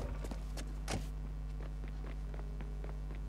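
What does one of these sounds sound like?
Footsteps run quickly on hard ground.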